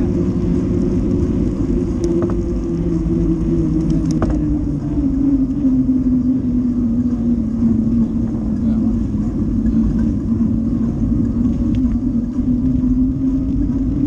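Bicycle tyres hum on a wet paved road.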